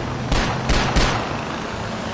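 Three gunshots ring out in quick succession.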